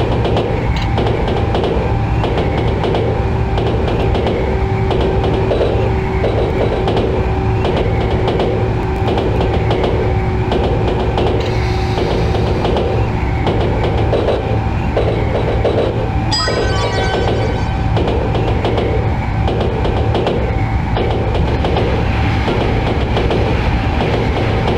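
A train rumbles along the rails with a steady, rhythmic clatter of wheels over track joints.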